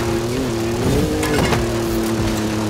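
A vehicle thumps against a barrier.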